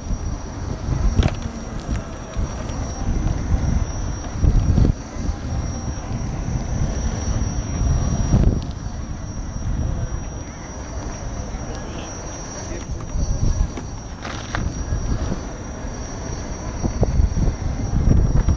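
An electric unicycle's tyre rolls and rumbles over pavement.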